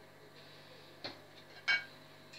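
A spoon clinks against a cup.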